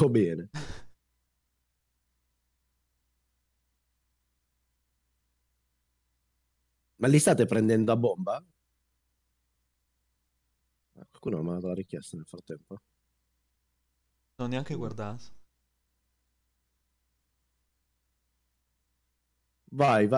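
A man speaks close into a microphone in short, animated bursts with long pauses.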